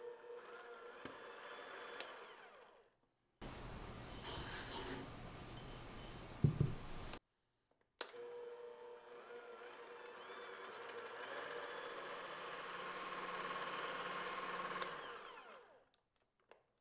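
An electric hand mixer whirs steadily as it whips in a bowl.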